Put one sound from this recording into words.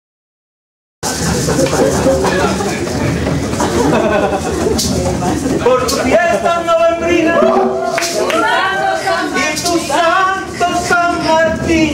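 Maracas shake in rhythm.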